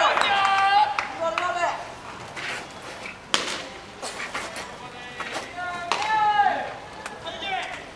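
Young men shout loud calls from across an open ball field.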